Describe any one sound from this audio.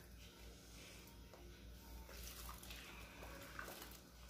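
Liquid pours through a funnel and trickles into a bottle.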